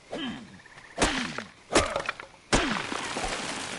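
An axe strikes a tree trunk with hard, loud thuds.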